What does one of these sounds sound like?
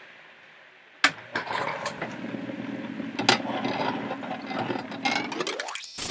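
A lapidary grinding wheel machine runs with a whirring hum.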